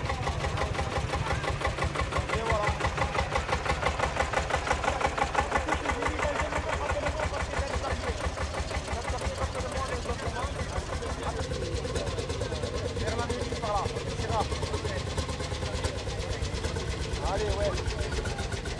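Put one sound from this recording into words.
An old tractor engine chugs loudly with a steady, rapid putter.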